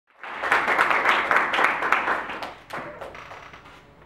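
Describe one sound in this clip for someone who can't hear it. An audience claps in a room.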